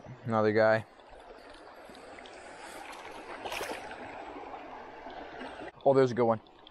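Water splashes as feet wade through a shallow stream.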